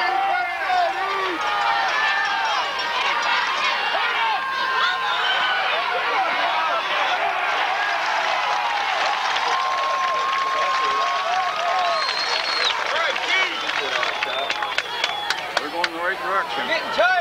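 A crowd of people shouts and cheers outdoors.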